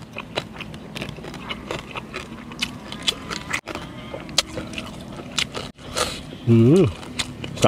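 A man chews food loudly with wet smacking sounds.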